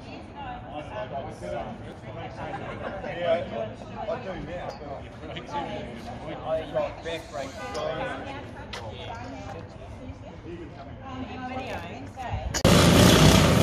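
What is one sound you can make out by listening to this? A group of men chat casually outdoors nearby.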